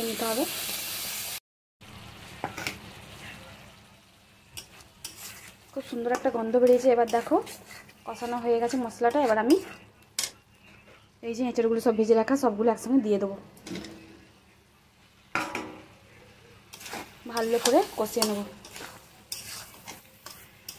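A metal spatula scrapes and clinks against a metal wok.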